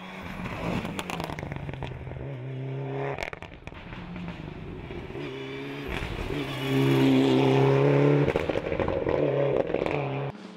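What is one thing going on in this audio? A rally car engine roars and revs hard.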